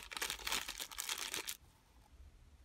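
A plastic bag crinkles up close.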